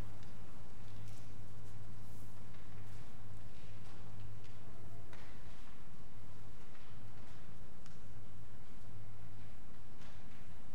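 A congregation shuffles and rustles faintly in a large echoing hall.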